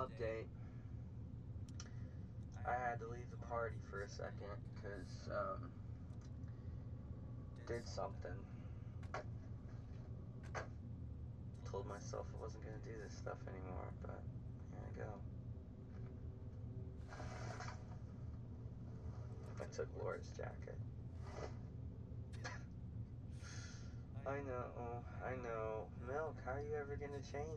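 A young man talks with animation close by, pausing now and then.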